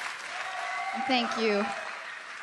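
A young woman speaks into a microphone over loudspeakers.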